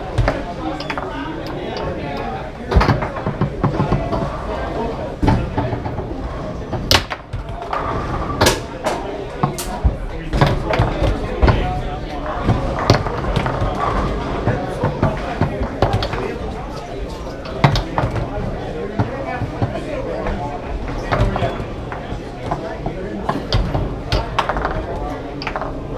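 A foosball ball cracks against the rods and walls of a table with sharp knocks.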